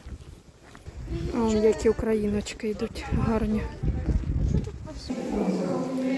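Women talk nearby outdoors.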